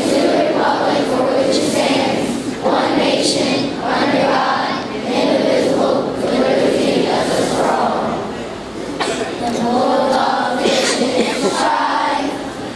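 A young girl speaks steadily into a microphone.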